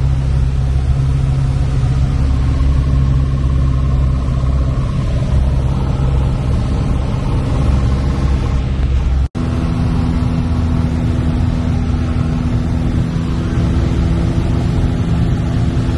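A small plane's propeller engine drones loudly and steadily from inside the cabin.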